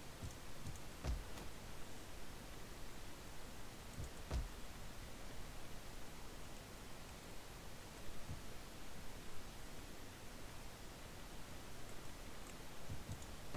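Soft menu clicks sound now and then.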